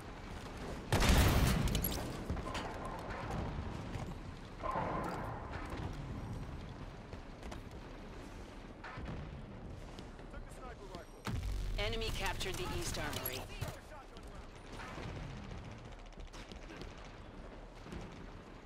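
Loud weapon blasts boom, one after another.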